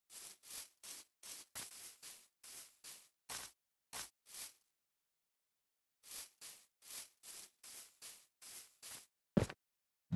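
Footsteps tread steadily on grass.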